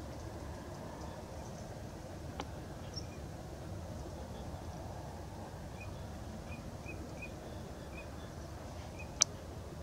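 Wading birds softly peck and probe in wet ground.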